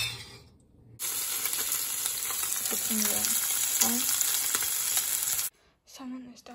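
Fish sizzles loudly in a hot frying pan.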